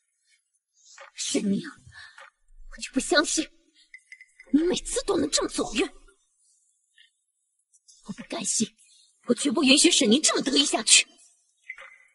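A young woman speaks coldly and firmly, close by.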